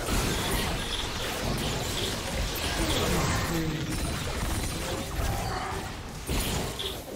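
Magic spells crackle and blast in a fast fight.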